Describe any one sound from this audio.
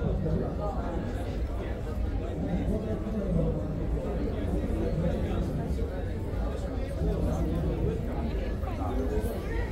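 A crowd of people chatter nearby in a large hall.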